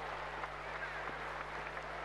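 Players clap their hands.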